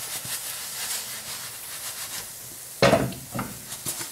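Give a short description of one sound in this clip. A frying pan knocks against a metal stove grate.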